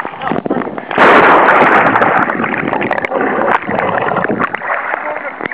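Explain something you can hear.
Water splashes and churns loudly underwater.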